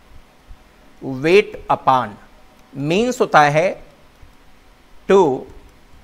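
A man speaks calmly and clearly into a close microphone, explaining in short phrases.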